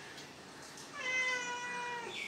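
A cat meows close by.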